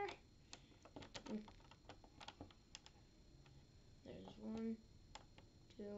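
Plastic puzzle cube pieces click and clack as they are turned.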